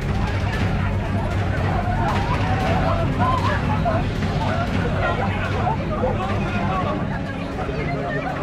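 A crowd of men and women shout and scream in panic.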